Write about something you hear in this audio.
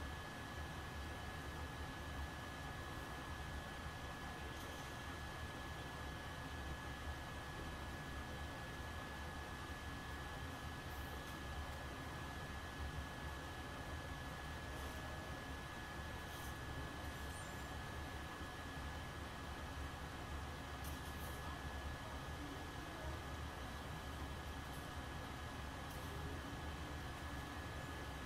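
Laser blasts and clashes from a video game play faintly through a television.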